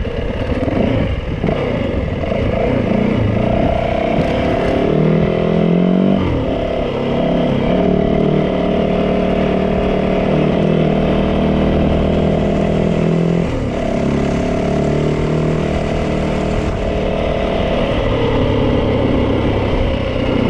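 A motorcycle engine hums steadily and shifts in pitch as it rides along.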